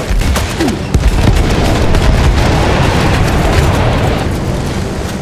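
A plane explodes with a deep, rumbling blast.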